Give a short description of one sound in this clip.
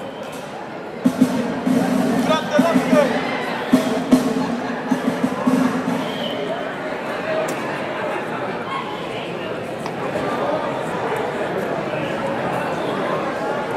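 A live band plays loudly in a large echoing hall.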